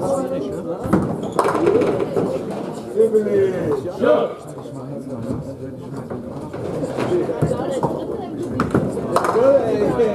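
A heavy ball thuds onto a lane and rolls along it.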